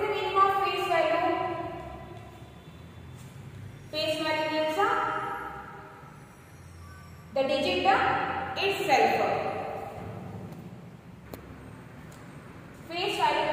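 A young woman speaks slowly and clearly, as if teaching, in an echoing room.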